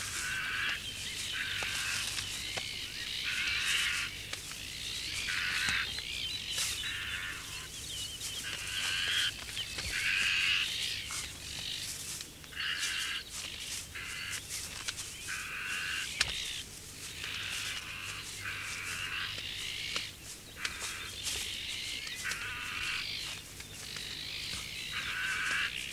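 Jays screech harshly again and again, close by.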